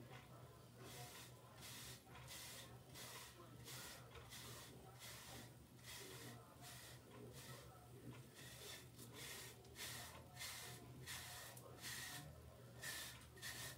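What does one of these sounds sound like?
A hairbrush swishes in quick, repeated strokes through short hair.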